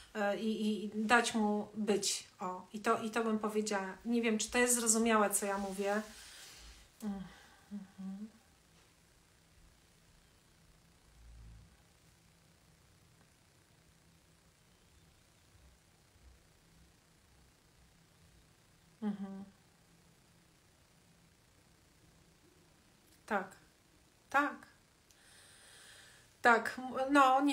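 A middle-aged woman speaks with animation close to a microphone, with long pauses.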